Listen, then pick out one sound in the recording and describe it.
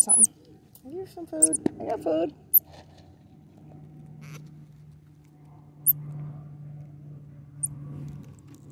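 A small monkey chirps in short, shrill squeaks.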